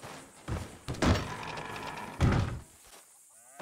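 A heavy wooden barn door creaks and bangs open.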